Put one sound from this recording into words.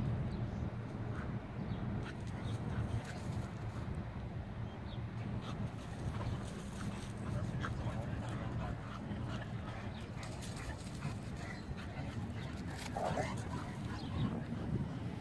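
Two dogs growl playfully as they wrestle.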